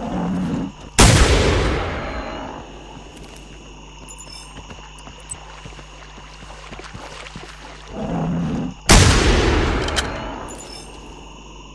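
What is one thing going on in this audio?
A rifle fires loud shots that ring out and echo away.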